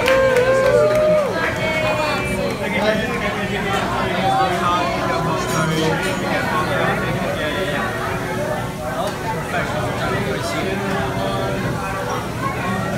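A crowd of people chatter in the background.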